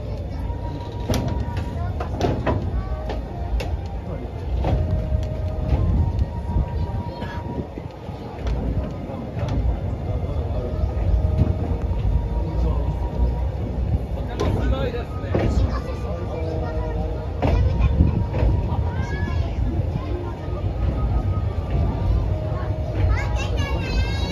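A train car rumbles steadily over the tracks.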